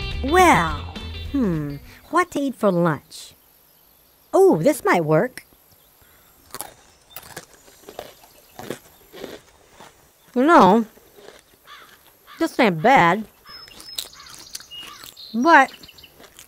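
A woman speaks close by in a playful, squeaky character voice, in short bursts.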